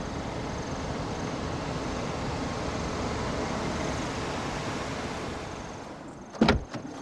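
A car engine hums as a car rolls slowly over pavement.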